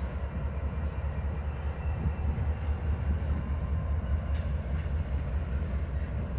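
A freight train rumbles past on the tracks nearby.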